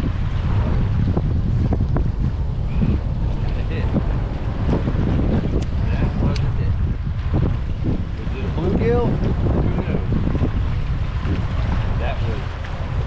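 Small waves lap against a kayak's hull.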